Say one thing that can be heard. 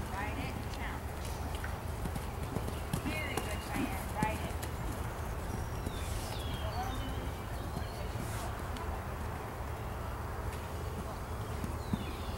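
A horse's hooves thud on soft dirt at a canter.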